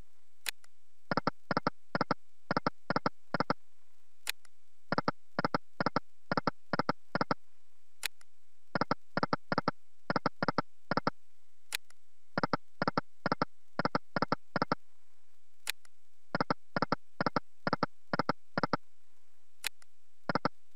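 A short sharp click starts each spin of electronic slot reels.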